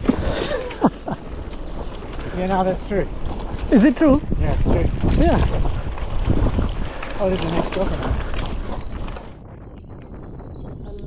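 Bicycle tyres crunch over a gravel track.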